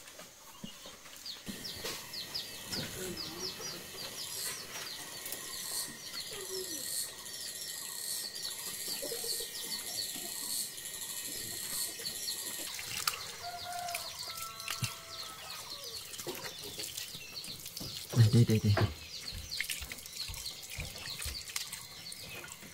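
Water splashes as a dog is washed.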